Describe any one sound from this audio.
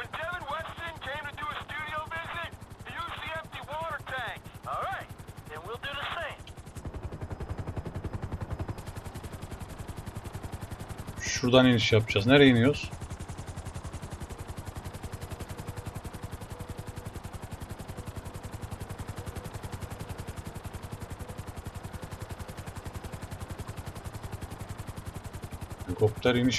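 A helicopter's rotor thuds steadily.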